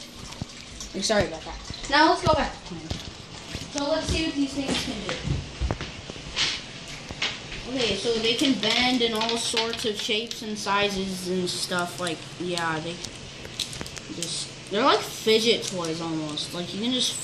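A young child talks with animation close by.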